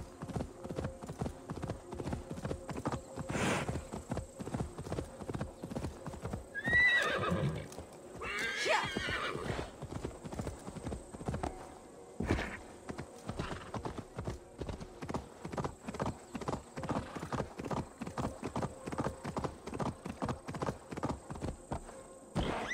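Horse hooves gallop steadily over grass and stone.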